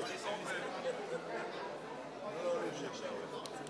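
Men and women speak together through microphones.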